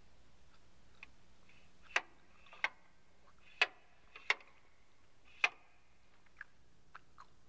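Switches on a mixing desk click sharply.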